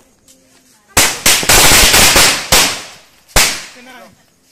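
A firecracker bursts with loud, rapid bangs.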